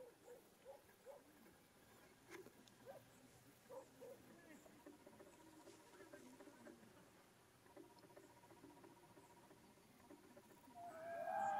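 Small birds chirp softly.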